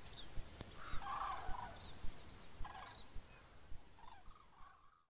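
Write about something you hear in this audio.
Cranes call with loud trumpeting cries overhead.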